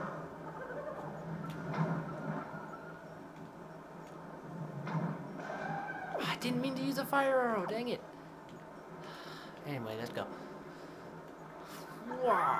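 Video game music and chiming sound effects play from a television speaker.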